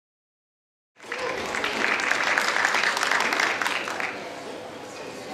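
Spectators clap in a large echoing hall.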